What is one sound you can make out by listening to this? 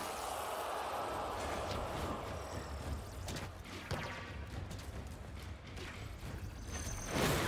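Quick footsteps clatter on a hard floor.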